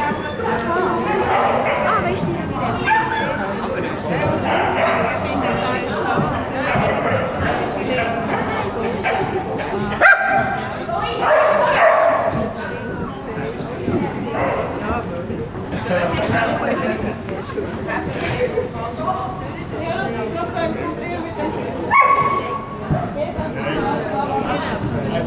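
A woman calls out commands to a dog in a large echoing hall.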